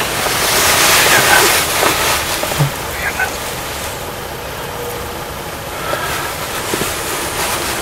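A man whispers softly close by.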